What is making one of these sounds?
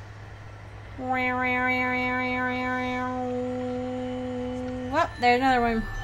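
A shimmering magical tone rings out steadily, then fades.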